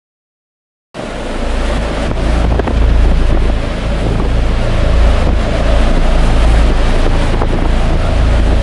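Rough sea waves crash and churn.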